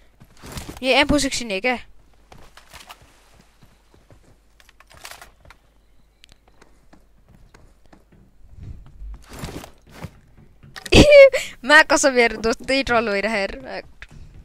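Footsteps thud and clank quickly on metal.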